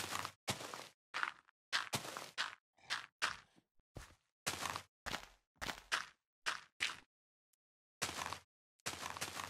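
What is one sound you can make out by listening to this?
Dirt crunches in short bursts as blocks are dug out.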